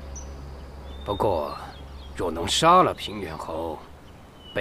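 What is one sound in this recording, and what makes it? An elderly man speaks in a low, measured voice, close by.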